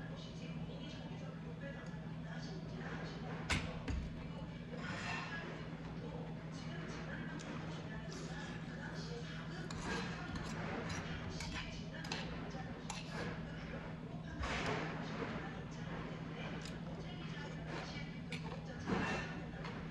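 A spoon clinks against a stone bowl.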